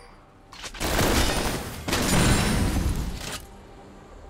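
Clashing game combat effects burst and crackle.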